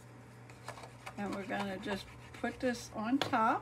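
A glue pen dabs lightly onto paper.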